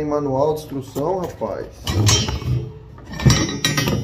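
A heavy metal spring clunks as it is set down.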